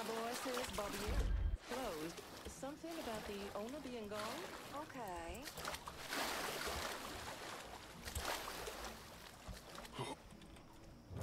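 Water splashes as a swimmer strokes through a river.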